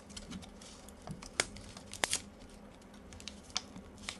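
Scissors snip through a foil wrapper.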